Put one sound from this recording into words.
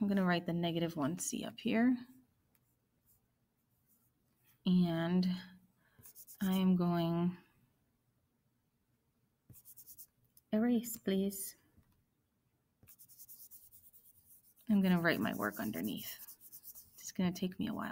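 A woman speaks calmly and clearly into a close microphone, with pauses.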